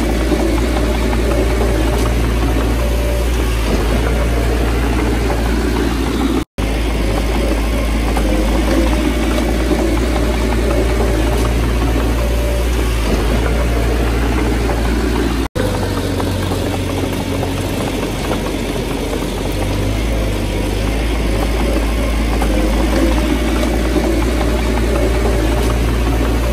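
A small bulldozer engine rumbles steadily close by.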